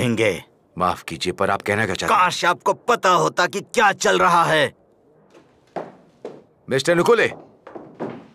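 A middle-aged man speaks forcefully up close.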